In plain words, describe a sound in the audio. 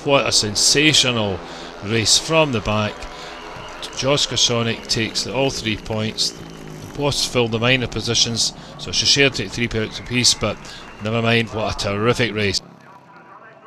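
Motorcycle engines roar and rev loudly as the bikes race past.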